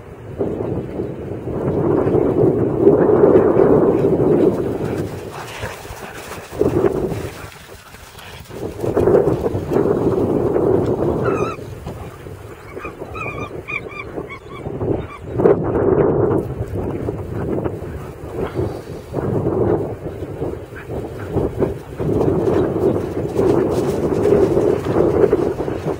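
Wind roars in gusts outdoors.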